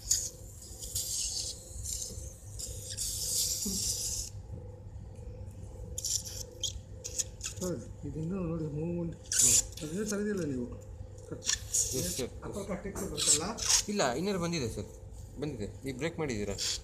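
A surgical suction tube hisses and slurps in bursts.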